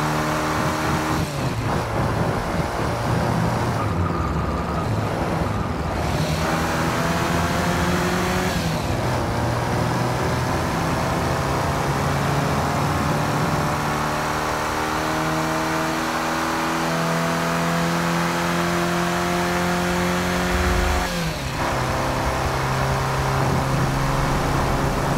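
A car engine roars and revs up through the gears, rising and dropping in pitch with each shift.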